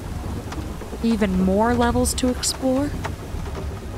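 A young woman speaks briefly and expressively, close to a microphone.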